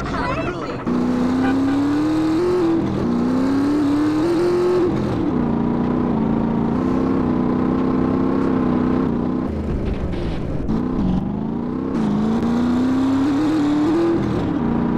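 A motorcycle engine revs and drones steadily, rising and falling in pitch.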